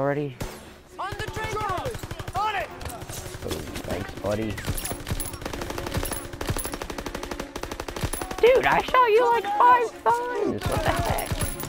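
A machine gun fires rapid bursts nearby.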